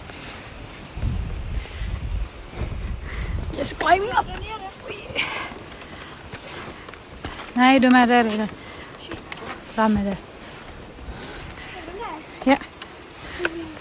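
Wooden boards knock and creak under footsteps.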